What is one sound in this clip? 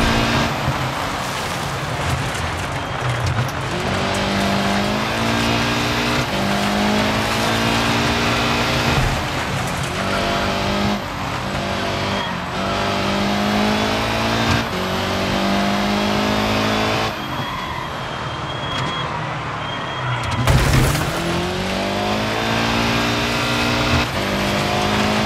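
A car engine revs hard, rising and falling in pitch as the gears shift.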